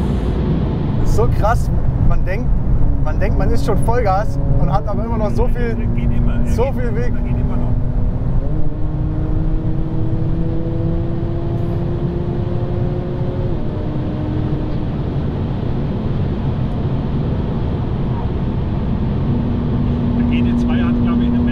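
A car engine roars loudly, its pitch slowly climbing between gear shifts.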